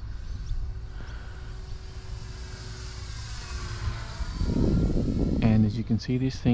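A small propeller plane drones overhead and passes by.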